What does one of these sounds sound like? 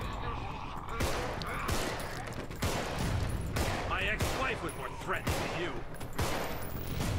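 Pistol shots fire sharply, one after another.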